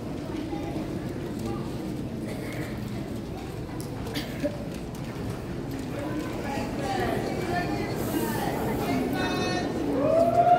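An audience chatters and murmurs in a large echoing hall.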